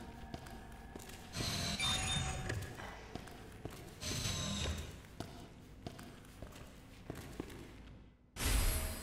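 Footsteps sound.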